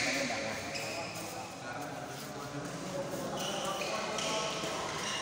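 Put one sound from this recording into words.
A crowd of onlookers murmurs in the background.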